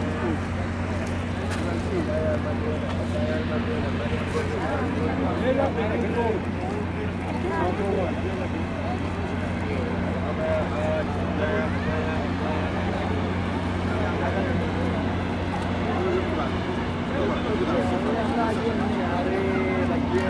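A group of men talk close by outdoors, several voices overlapping.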